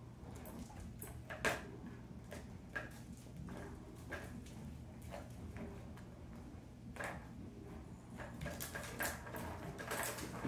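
A ball rattles around a plastic track toy.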